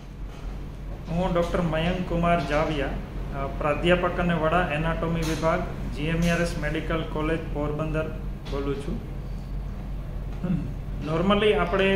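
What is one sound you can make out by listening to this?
A man speaks calmly and closely into a microphone.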